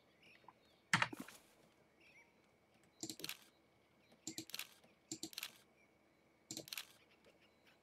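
Short interface clicks sound as menu options are selected.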